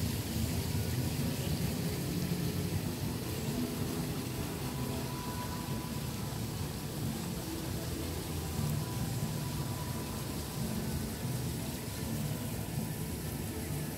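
Small fountains splash and gurgle nearby.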